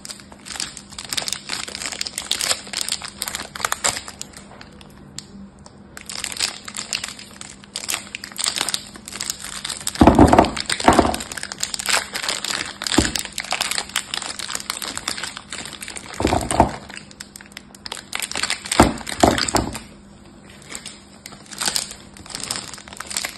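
Plastic wrapping crinkles and rustles as fingers squeeze and pick at it.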